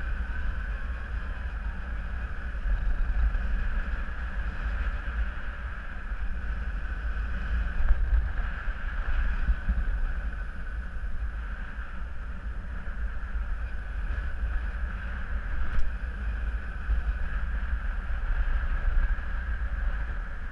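Wind rushes and buffets steadily past a microphone outdoors.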